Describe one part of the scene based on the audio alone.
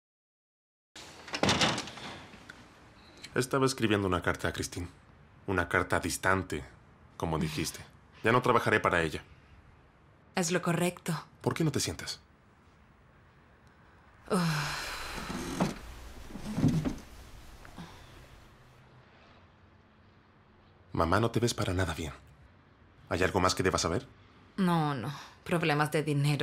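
A man speaks with feeling at close range.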